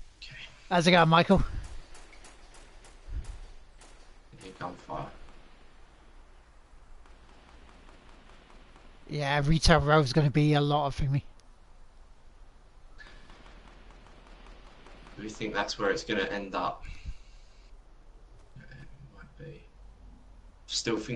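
A man talks with animation close to a microphone, in short bursts.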